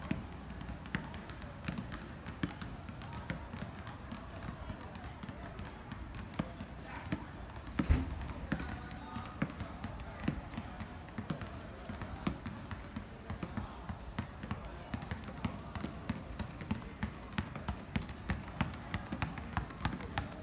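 A basketball bounces again and again on an outdoor court with sharp thuds.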